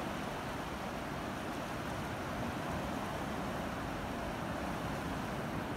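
Wind blows across the open beach.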